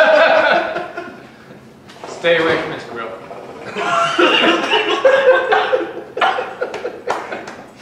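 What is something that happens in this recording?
Men laugh loudly together.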